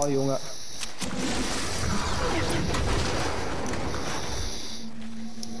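A character slides quickly across snow with a rushing hiss.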